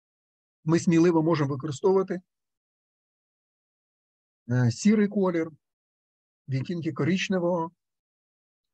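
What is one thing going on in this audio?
A man speaks calmly through an online call microphone, in short phrases with pauses.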